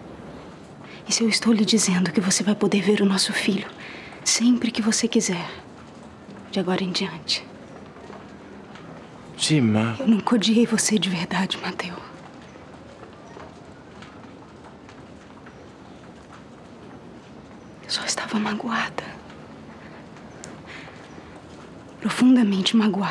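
A young woman speaks emotionally and tearfully, close by.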